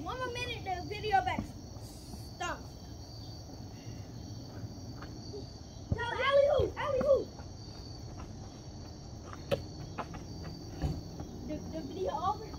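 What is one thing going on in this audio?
Young boys shout and talk with animation nearby outdoors.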